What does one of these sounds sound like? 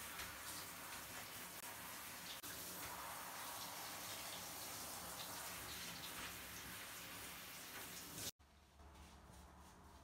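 Hands rub and scrub a dog's wet, soapy fur.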